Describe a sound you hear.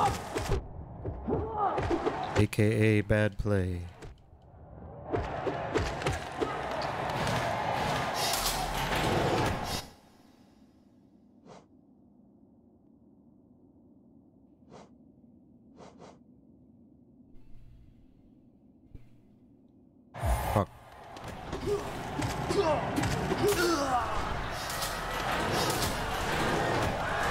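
Video game combat sounds clash and crash loudly.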